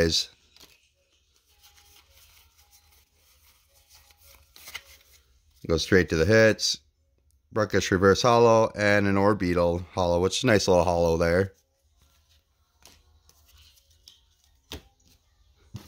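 Playing cards shuffle and flick softly between fingers.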